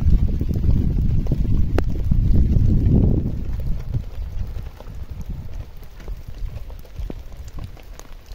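Wind rumbles against the microphone outdoors, strong at first and then easing.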